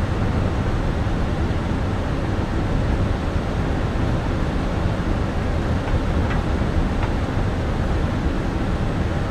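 A jet airliner's engines and airflow roar steadily inside the cockpit.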